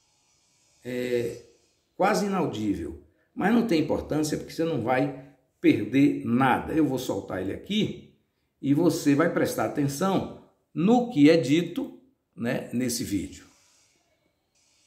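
An elderly man talks with animation close to the microphone.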